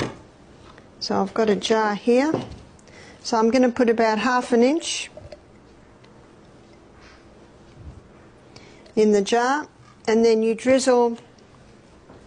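A middle-aged woman speaks calmly into a clip-on microphone.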